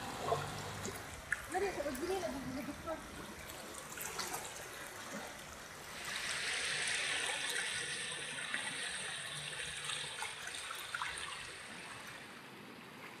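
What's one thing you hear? Floodwater rushes and gurgles close by.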